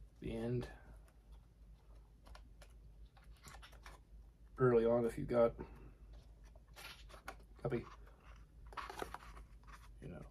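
Paper pages rustle as a booklet is flipped through.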